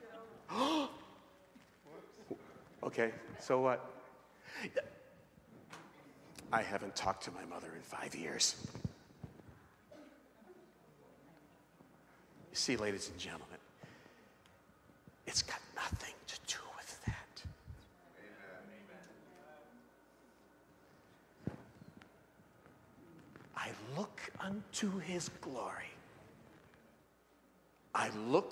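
A middle-aged man preaches with animation through a microphone, with pauses.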